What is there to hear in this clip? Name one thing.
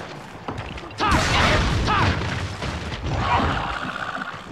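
A small creature squeals and roars.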